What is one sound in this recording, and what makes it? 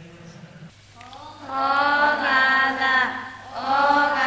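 A group of young women chant together through a microphone.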